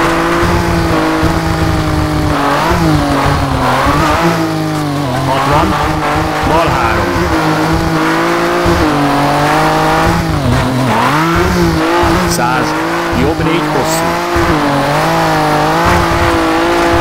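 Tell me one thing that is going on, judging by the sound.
A rally car engine roars and revs up and down through gear changes.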